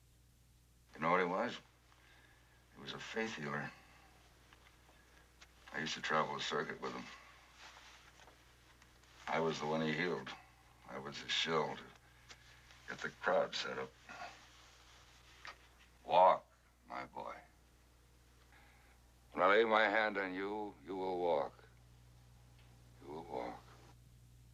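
A man speaks in short, calm phrases with pauses between them.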